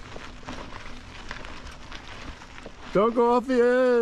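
A bicycle's tyres roll over rough rock.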